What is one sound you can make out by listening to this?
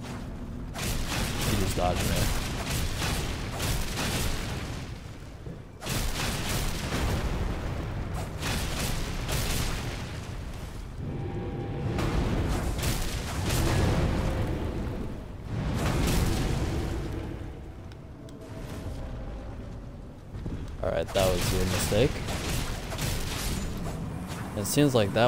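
Heavy metal weapons clang and thud against each other.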